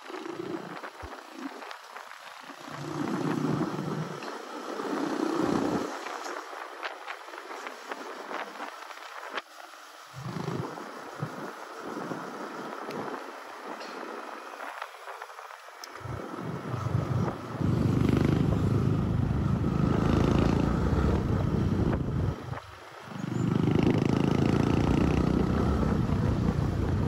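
Wind rumbles and buffets in gusts, loudest toward the end.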